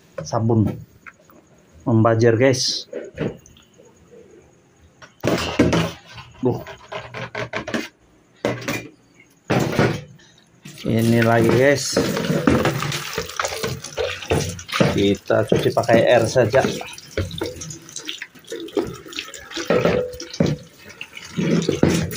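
Plastic basins bump and scrape against a metal sink.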